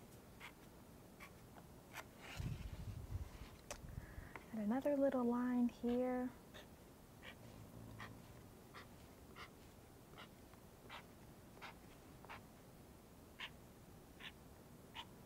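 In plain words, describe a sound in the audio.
A felt-tip marker squeaks and taps as it draws on a hard surface.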